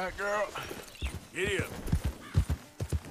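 Horse hooves thud on soft ground.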